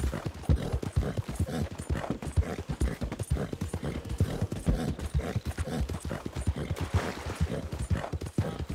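A horse gallops steadily, hooves thudding on soft ground.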